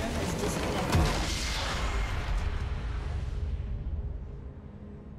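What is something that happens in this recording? A large game structure explodes with a deep, rumbling boom.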